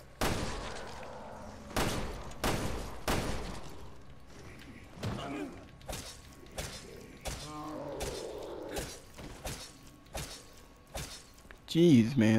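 Gunshots fire in quick bursts, with short echoes.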